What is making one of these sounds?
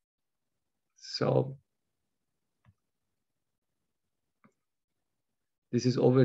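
A man speaks calmly and close through a microphone in short bursts.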